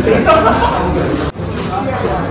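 A metal knife and fork scrape against a pan.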